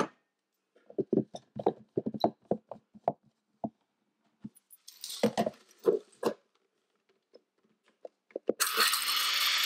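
Plastic parts clatter and click as a blender cup is handled.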